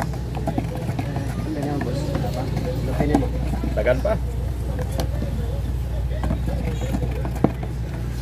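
A metal scraper stirs thick paint in a tin can.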